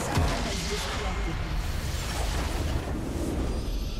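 A base structure explodes with a loud burst.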